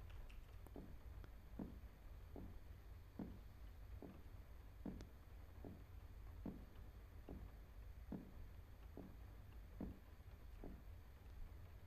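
Footsteps tap at a steady pace on a hard floor.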